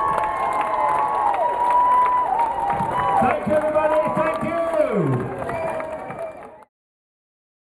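A large outdoor crowd cheers.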